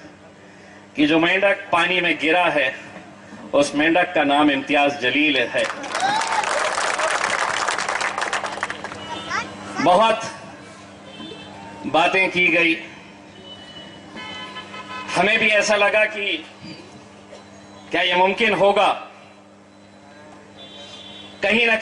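A middle-aged man speaks with animation into a microphone over loudspeakers, in short bursts with pauses.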